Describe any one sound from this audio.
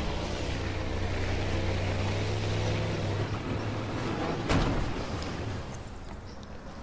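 A motorboat engine roars steadily at speed.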